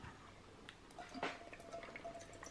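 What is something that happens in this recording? Liquid trickles from a can into a metal pot.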